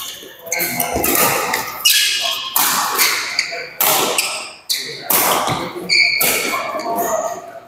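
Badminton rackets strike a shuttlecock with sharp pops that echo around a large hall.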